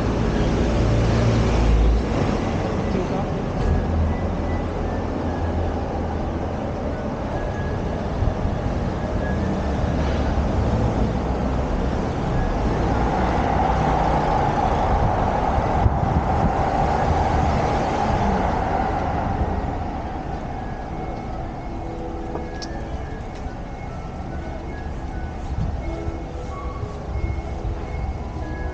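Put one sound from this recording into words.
Traffic hums steadily on a nearby street outdoors.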